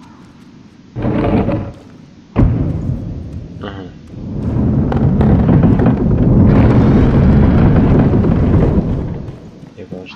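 A heavy wooden gate rumbles as it slides open.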